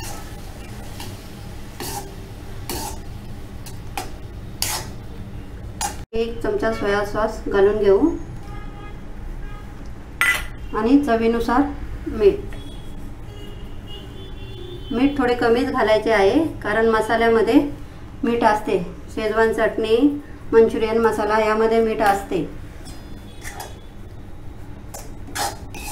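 A metal spatula scrapes and knocks against a pan.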